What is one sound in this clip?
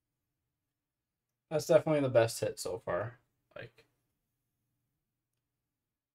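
A card clicks softly into a plastic stand.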